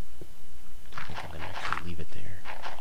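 A stone block crumbles as it is dug away.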